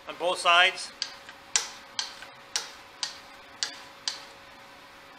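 A small metal tool taps sharply on wood at a steady pace.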